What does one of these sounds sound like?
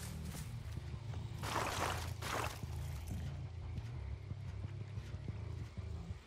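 Footsteps crunch through dry undergrowth.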